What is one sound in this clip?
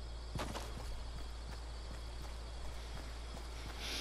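A rifle fires a single shot.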